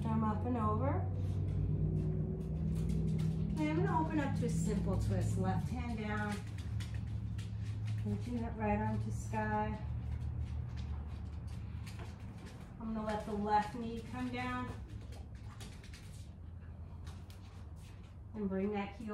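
A middle-aged woman speaks calmly and slowly, close by.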